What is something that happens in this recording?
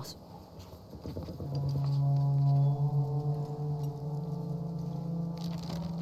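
Paper rustles as a map is handled.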